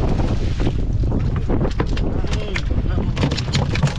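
A fish flops and thuds onto a boat's deck.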